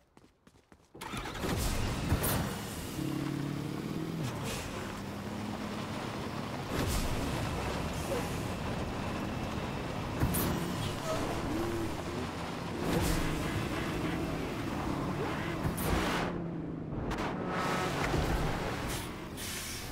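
A truck engine roars and revs steadily.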